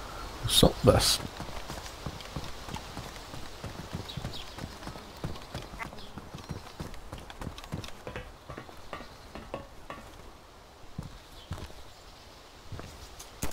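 Footsteps thud on a hard floor at a brisk walk.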